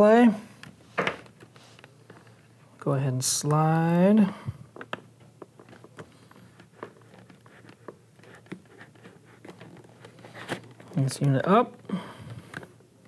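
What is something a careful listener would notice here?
Small plastic parts click and rattle as hands fit them onto a helmet.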